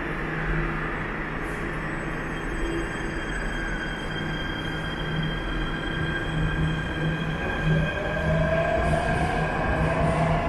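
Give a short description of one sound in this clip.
A metro train rumbles and whines as it moves past the platform, its motor pitch sliding downward.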